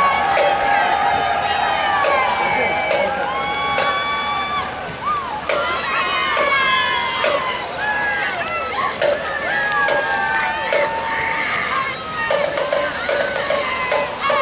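A marching band plays brass and drums outdoors in a large open stadium.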